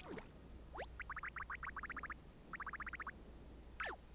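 A cartoon character's voice chatters in quick, high chirping blips.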